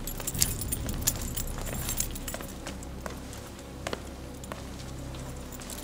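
Footsteps shuffle and sandals scuff on a stone floor.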